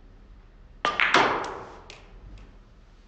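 Billiard balls clack loudly against each other.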